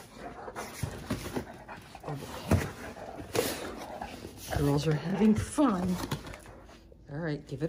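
Dogs paw and nudge a cardboard box, which scrapes and rustles.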